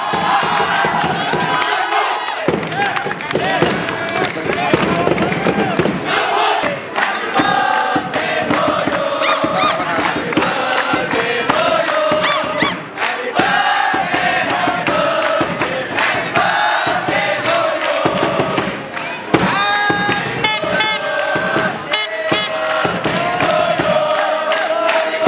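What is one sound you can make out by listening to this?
A crowd of fans sings and chants loudly in a large open stadium.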